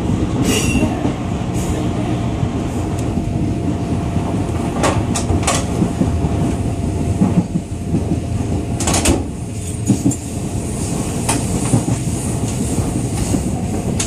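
A train rumbles steadily along with a low roar.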